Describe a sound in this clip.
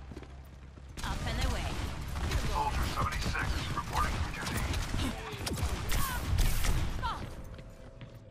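A game weapon fires rockets that explode.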